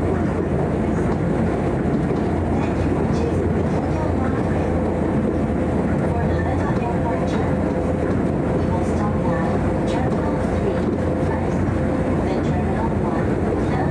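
A train's wheels clatter on the rails.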